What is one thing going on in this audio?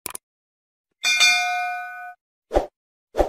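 A small bell chimes and rings out.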